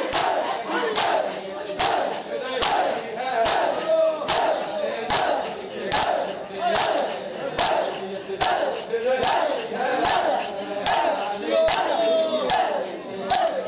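Chains and hands strike bare chests in a steady beat, about once a second.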